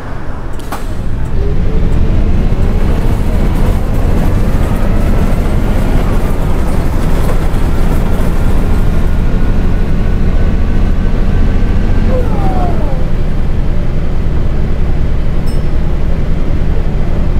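A bus engine roars as the bus speeds up, its whine slowly rising in pitch.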